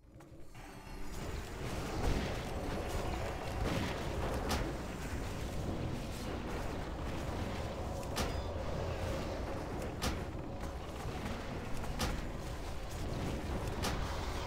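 Spell blasts and weapon clashes crackle and boom in a game battle.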